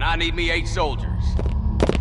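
Boots march in step on cobblestones.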